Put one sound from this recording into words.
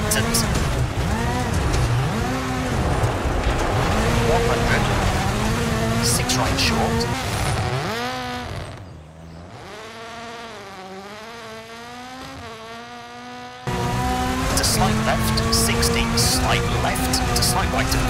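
A rally car engine revs hard and shifts gears up and down.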